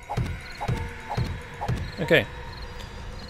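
Wooden blocks are placed with short, sharp knocks.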